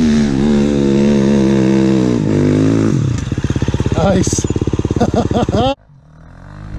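A second dirt bike engine idles and revs nearby.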